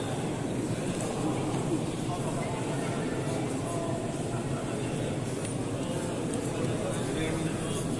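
A crowd of men murmurs and talks in a large echoing hall.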